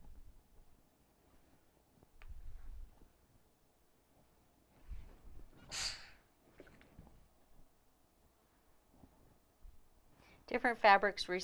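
An iron slides and thumps on fabric.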